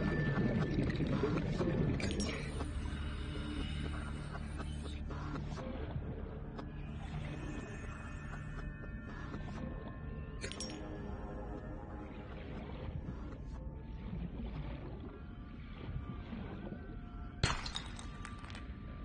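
A low, steady underwater rumble drones on.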